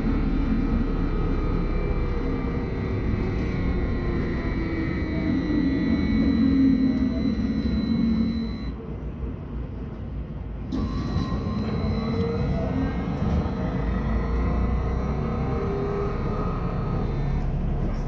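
A vehicle's engine hums steadily from inside as it drives along a road.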